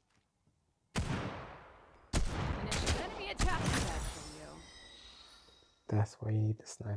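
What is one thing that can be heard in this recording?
A rifle fires a burst of gunshots.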